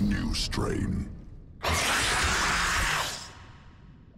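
A monstrous creature growls and hisses.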